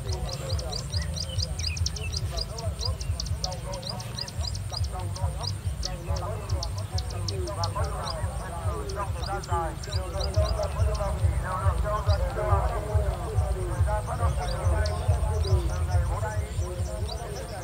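Birds chirp repeatedly in the distance.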